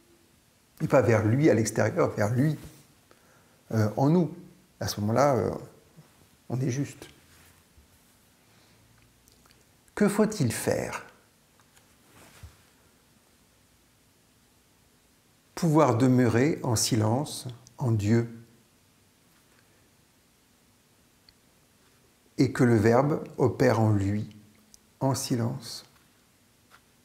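An elderly man speaks calmly and close by, with long pauses.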